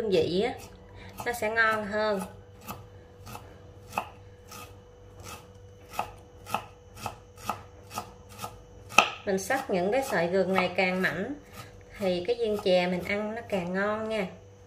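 A knife chops steadily on a wooden board in quick, regular strokes.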